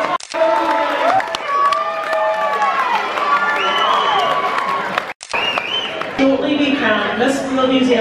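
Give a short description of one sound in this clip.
People in an audience clap their hands.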